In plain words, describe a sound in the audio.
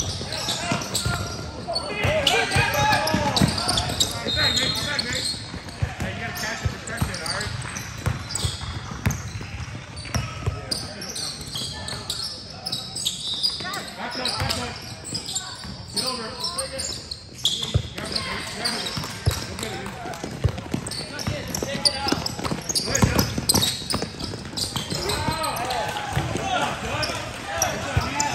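Teenage boys call out to each other in a large echoing hall.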